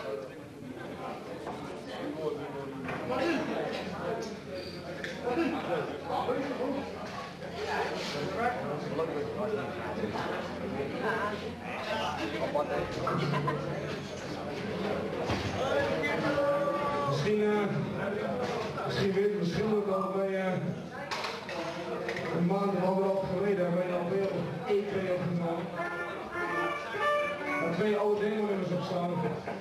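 Drums pound and cymbals crash.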